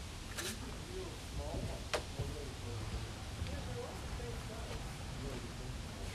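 Footsteps thud across a wooden deck outdoors.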